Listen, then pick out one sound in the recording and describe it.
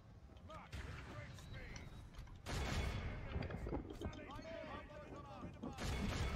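Weapons clash and thud in a noisy battle.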